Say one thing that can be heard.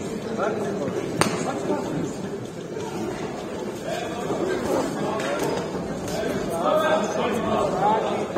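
A crowd of spectators murmurs and shouts in a large echoing hall.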